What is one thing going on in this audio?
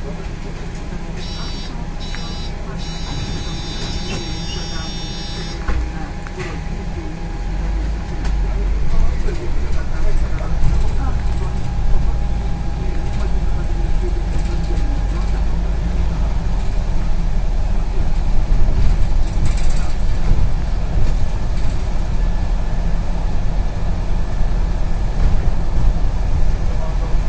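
The bus rattles and hums as it drives along the road.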